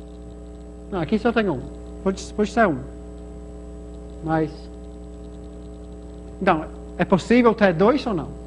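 A young man speaks calmly in short bursts, close by.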